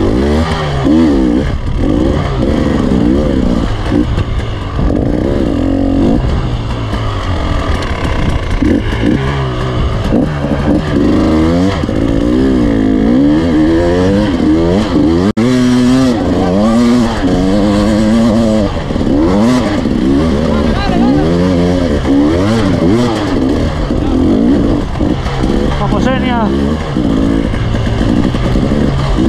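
Tyres crunch over loose rocks and gravel.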